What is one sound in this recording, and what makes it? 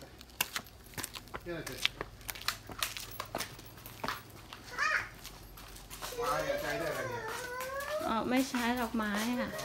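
A dog's claws tap on pavement.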